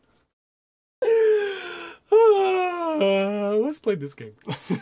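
A young man laughs loudly through a microphone.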